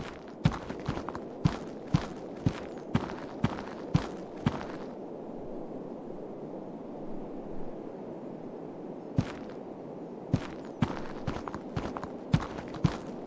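Footsteps thud on soft ground at a steady walking pace.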